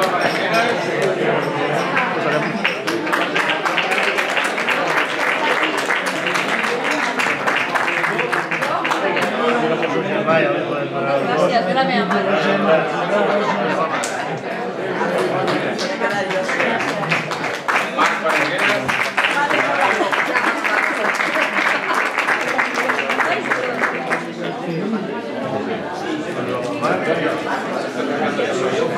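A crowd of people chatter and talk over one another.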